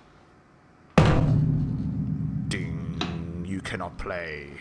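A piano chord is struck and rings out slowly.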